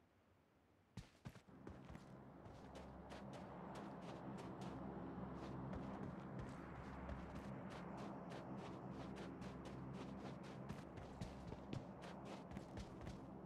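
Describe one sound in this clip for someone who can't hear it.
Footsteps crunch quickly over sand.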